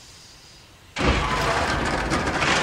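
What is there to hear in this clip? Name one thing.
Heavy machinery rumbles and hisses loudly.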